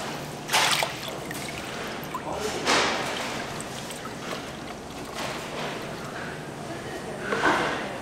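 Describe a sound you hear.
Liquid pours and splashes into a bottle.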